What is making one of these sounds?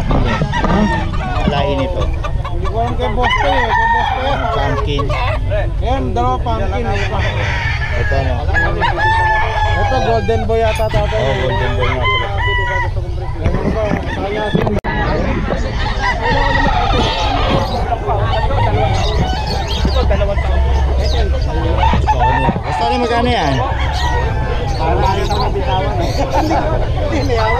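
A crowd of men talks and shouts loudly nearby, outdoors.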